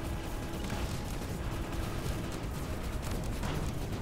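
Explosions boom and crackle in a game battle.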